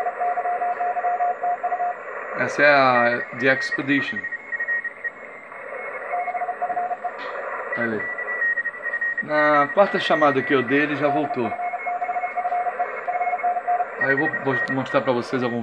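Morse code beeps from a radio receiver in quick, steady bursts.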